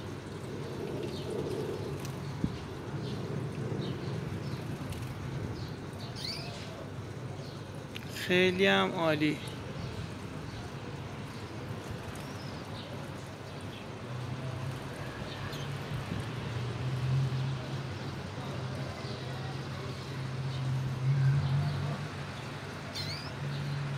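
A small caged bird chirps and twitters.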